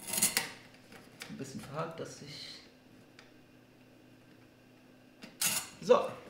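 A screwdriver scrapes and clicks while turning screws.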